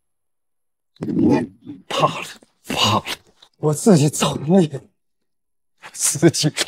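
A man speaks with animation, close by.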